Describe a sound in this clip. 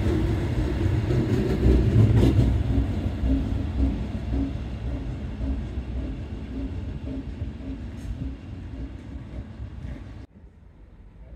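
A train rumbles away from the platform and slowly fades.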